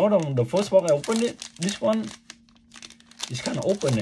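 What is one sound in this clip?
Plastic wrapping crinkles and rustles as hands unpack a box.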